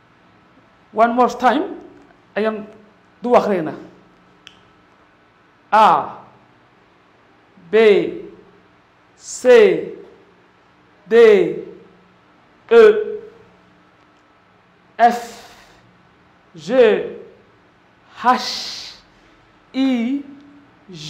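A man calls out letters one at a time into a close microphone, loudly and with animation, pausing between each.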